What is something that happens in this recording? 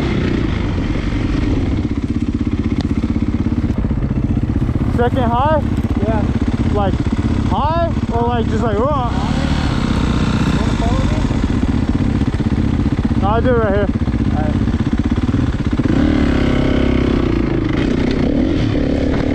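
A dirt bike engine roars and buzzes steadily up close.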